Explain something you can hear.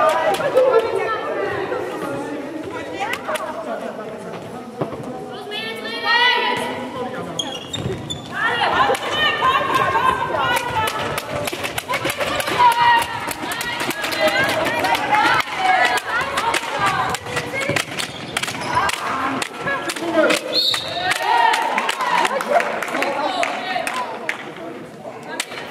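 A ball bounces on the hall floor.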